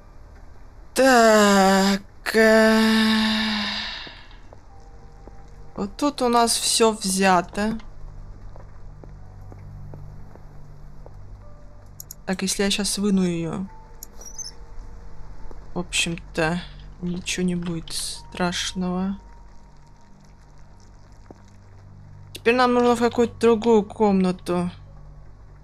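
A young person speaks with animation close to a microphone, in short bursts.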